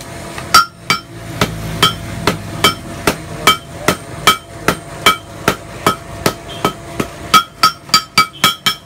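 Sledgehammers strike hot metal on an anvil in a quick, ringing rhythm.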